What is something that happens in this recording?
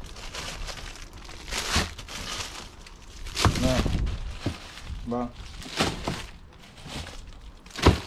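Plastic bags crinkle and rustle as frozen fish are handled.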